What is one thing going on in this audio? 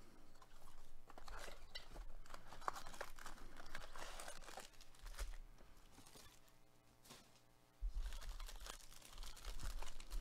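Plastic wrappers crinkle and rustle as card packs are handled.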